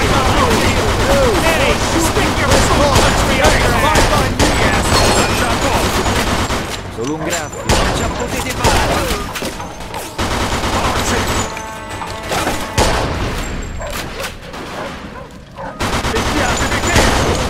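Rifle shots crack and echo.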